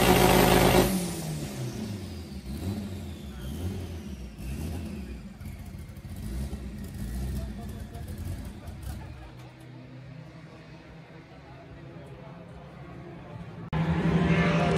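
A car engine roars loudly, then idles with a rough, pulsing rumble.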